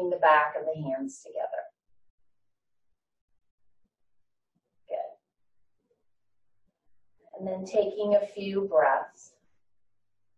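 A woman speaks calmly and clearly, close to a microphone, with pauses.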